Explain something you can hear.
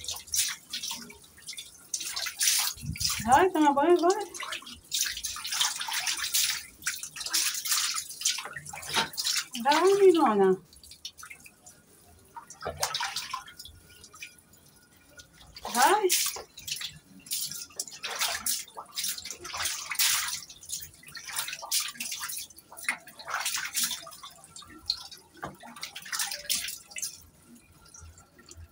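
Water splashes and sloshes as a duck paddles and flaps in a tub.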